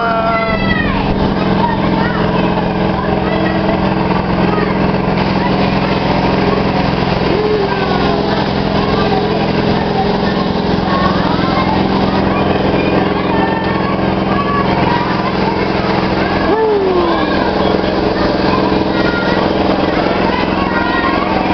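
Children shout and chatter nearby.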